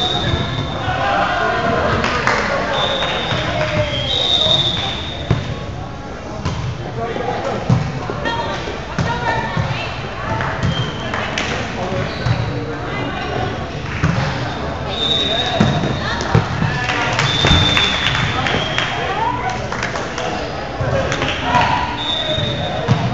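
Sneakers squeak sharply on a hard court floor, again and again.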